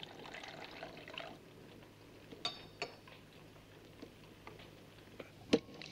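Eggs sizzle in a frying pan.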